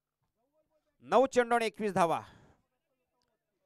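A young man shouts loudly outdoors.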